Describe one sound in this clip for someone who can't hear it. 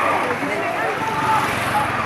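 A motorcycle engine passes close by.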